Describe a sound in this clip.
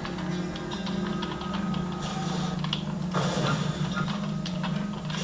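Computer keys click and clatter under fast fingers.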